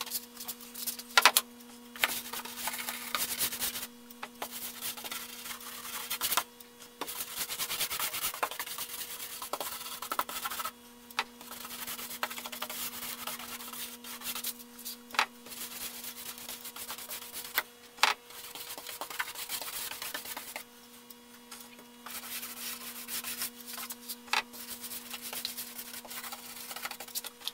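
A paintbrush swishes and brushes over a wooden surface.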